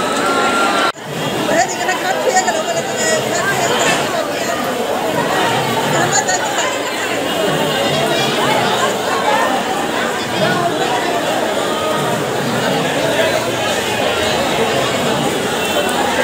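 Fireworks crackle and hiss among the crowd.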